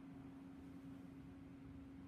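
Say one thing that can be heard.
A brush taps lightly against a glass paint jar.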